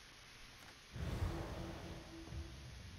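A door handle rattles as a door opens.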